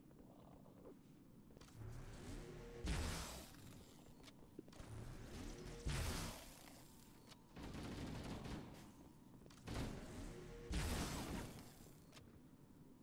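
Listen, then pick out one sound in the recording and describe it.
Energy weapons fire and hiss in short bursts.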